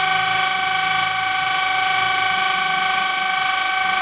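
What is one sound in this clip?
A grinding wheel grinds against metal.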